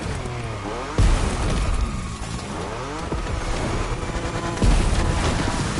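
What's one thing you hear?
A car crashes with heavy thuds against rocks.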